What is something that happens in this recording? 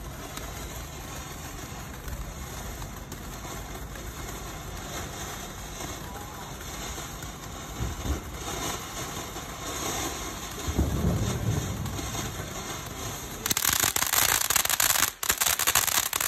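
A firework fountain hisses and crackles steadily outdoors.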